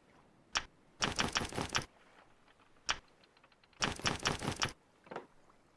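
Wooden crates knock and clatter as they are picked up.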